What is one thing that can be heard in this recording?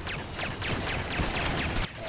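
An explosion bangs.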